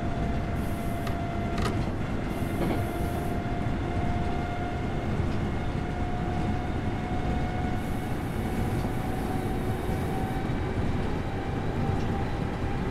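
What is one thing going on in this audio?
A train's motor hums steadily as it runs along the tracks.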